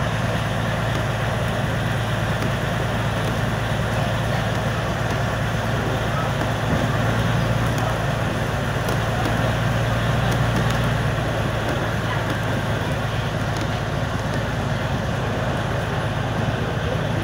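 Wind rushes past a moving train carriage.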